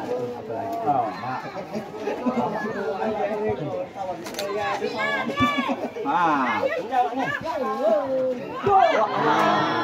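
A crowd of spectators shouts and cheers excitedly close by, outdoors.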